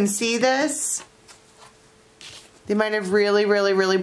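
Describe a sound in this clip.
A playing card slides across a table and is lifted.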